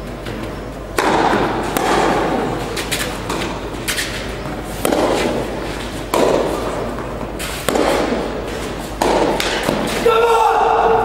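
A tennis ball is struck back and forth by rackets, echoing in a large hall.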